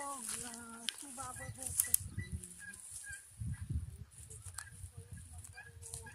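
Dry grass crunches under footsteps.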